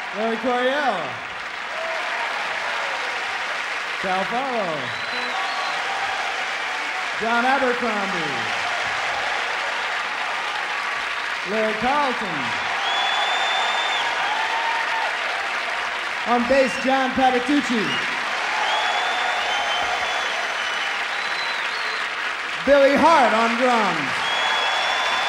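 A band of guitars and bass strikes short chords that slide down in pitch, again and again.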